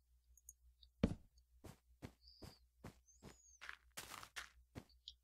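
Blocks are placed with soft thuds.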